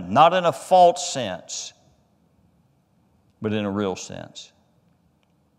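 A man speaks with emphasis through a microphone, pausing between phrases.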